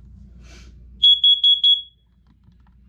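A smoke alarm gives a few loud, shrill beeps.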